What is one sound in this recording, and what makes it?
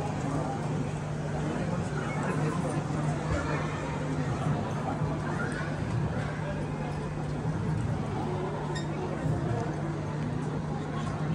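A crowd of men and women murmurs and chatters.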